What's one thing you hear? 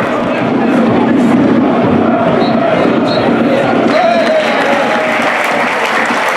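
A stadium crowd murmurs and chants steadily outdoors.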